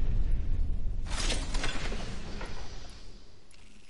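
Small metal items clatter as they are picked up.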